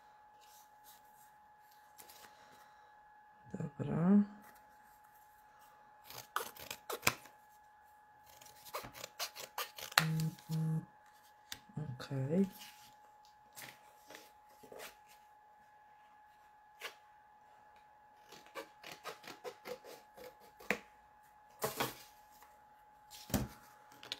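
Scissors snip through paper with short crisp cuts.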